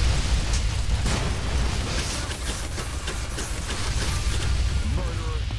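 Fiery explosions crackle and boom.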